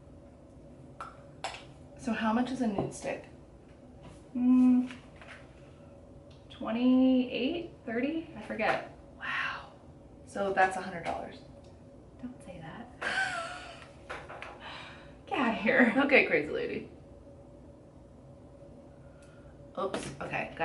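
A second young woman speaks calmly close to a microphone.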